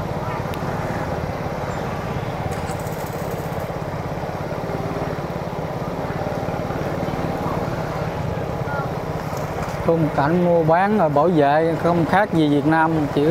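Motorbike engines hum and putter close by as scooters ride past.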